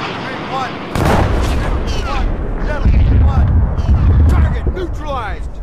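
A missile explodes with a deep boom.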